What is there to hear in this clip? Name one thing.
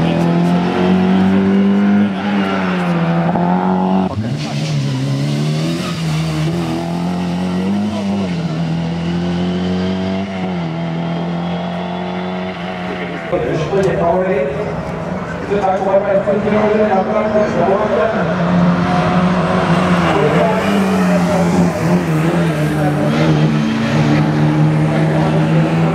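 A rally car engine revs hard and roars past.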